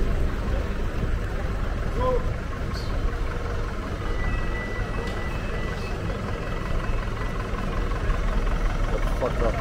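A van engine hums as it drives slowly closer.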